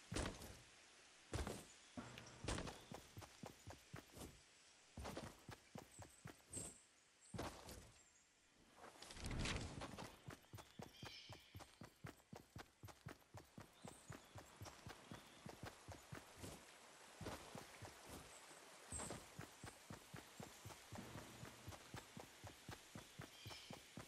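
Quick footsteps patter across the ground.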